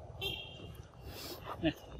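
A monkey bites and chews juicy fruit up close.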